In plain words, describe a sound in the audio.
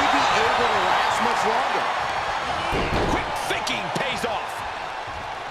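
Heavy bodies thud onto a wrestling ring's canvas.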